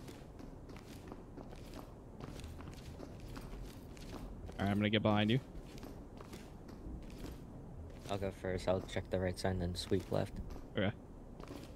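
Footsteps tread softly on a hard floor.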